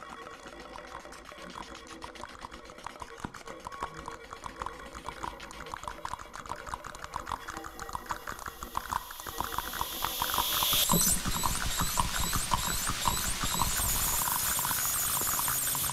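A band plays live electronic music, heard through an online call, growing louder.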